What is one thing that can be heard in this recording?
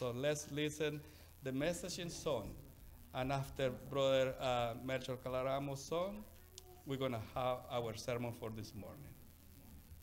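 A middle-aged man speaks calmly through a microphone in an echoing hall.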